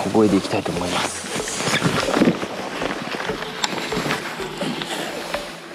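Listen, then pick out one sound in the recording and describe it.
Water laps gently against a small boat.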